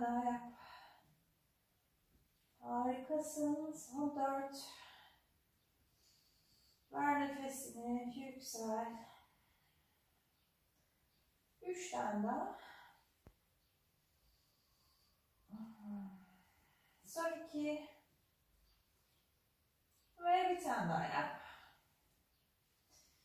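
A young woman speaks calmly and clearly in short phrases, close by.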